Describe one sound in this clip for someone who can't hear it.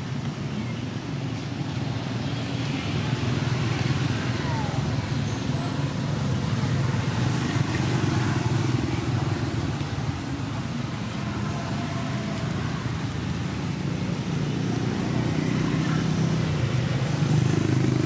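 A monkey chews and crunches on leafy vegetables.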